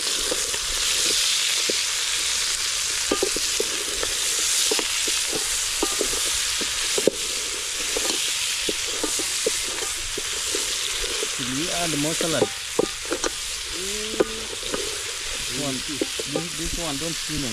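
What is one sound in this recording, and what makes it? A wooden spoon stirs and knocks against a metal pot.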